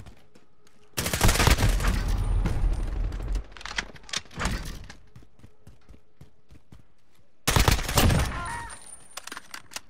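Gunfire rattles in loud, rapid bursts.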